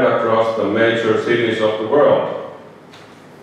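A man speaks calmly into a microphone through loudspeakers.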